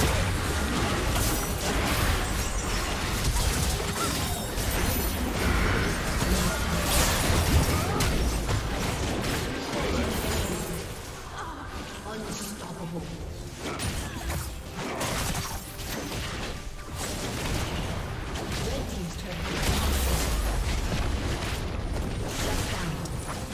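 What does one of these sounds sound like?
Magic spells crackle and explode in a busy fight.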